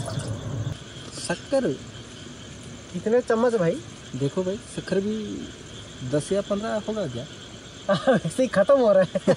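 A young man talks calmly nearby.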